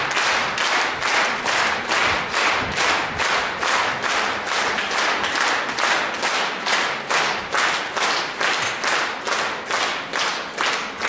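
An audience claps steadily in rhythm in a large echoing hall.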